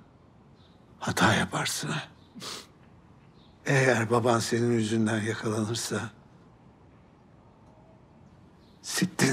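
An elderly man speaks quietly and earnestly, close by.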